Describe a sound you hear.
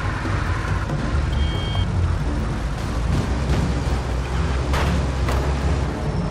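An old car engine rumbles steadily as the car drives along.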